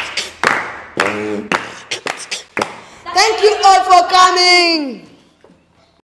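A young boy sings loudly into a microphone.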